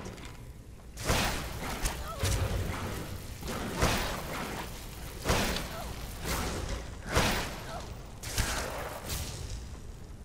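Arrows whoosh from a bow and strike with sharp thuds.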